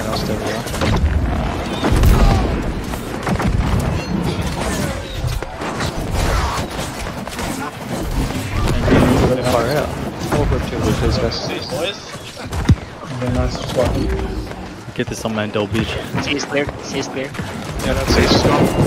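Magic spells burst and whoosh.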